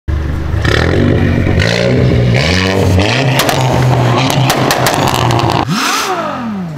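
A car engine roars loudly as the car accelerates away.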